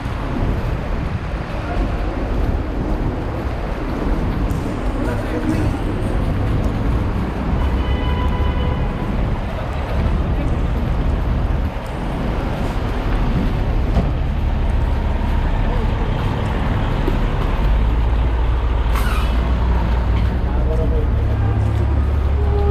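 Traffic hums steadily along a busy city street outdoors.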